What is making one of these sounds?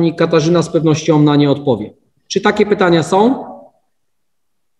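A man speaks calmly and formally through an online call microphone.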